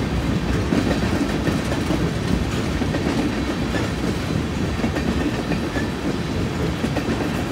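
Metal couplings clank and squeal as tank cars roll by.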